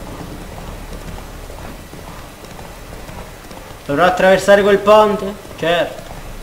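A horse gallops with hooves thudding on a dirt path.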